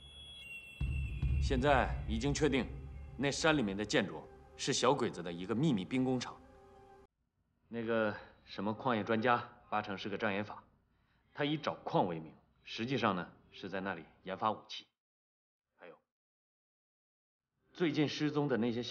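A young man speaks earnestly and steadily, close by.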